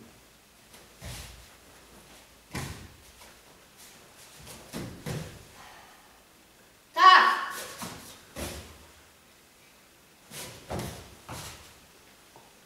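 Bare feet thump and slap on a mat.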